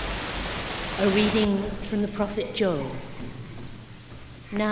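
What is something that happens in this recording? A woman sings through a microphone in a large echoing hall.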